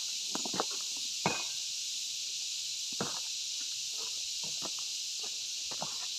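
Boots crunch on stony ground nearby.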